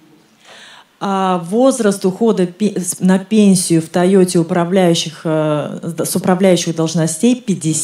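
A woman speaks into a microphone, heard loudly through a loudspeaker.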